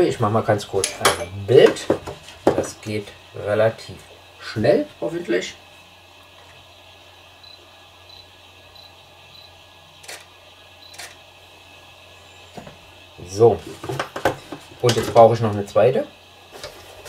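Small plastic parts and metal tools click and clatter on a tabletop.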